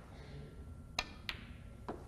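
A cue strikes a snooker ball with a sharp click.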